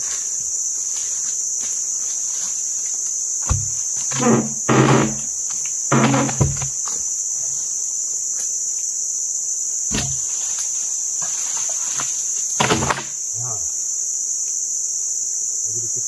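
A chainsaw engine runs nearby.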